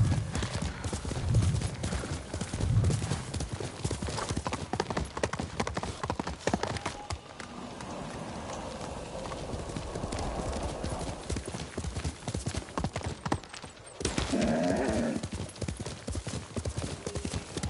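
Horse hooves gallop quickly over the ground.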